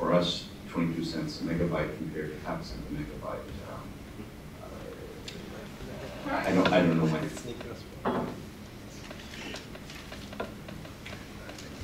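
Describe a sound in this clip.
A man speaks calmly into a microphone in a room with slight echo.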